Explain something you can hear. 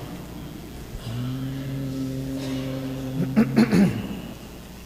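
A man chants in a low voice through a microphone.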